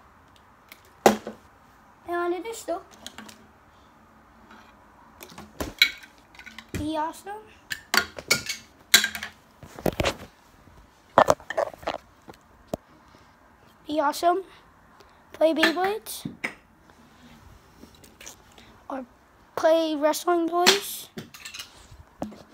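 Plastic toy blocks clatter and knock together.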